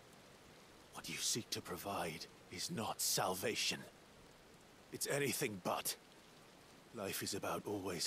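A young man answers with rising anger.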